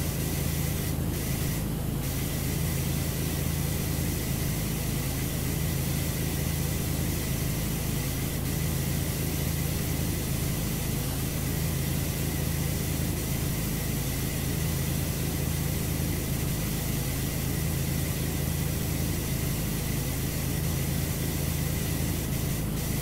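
A pressure washer sprays a steady hissing jet of water.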